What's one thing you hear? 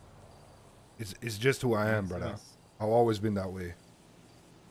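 A man speaks animatedly through a microphone.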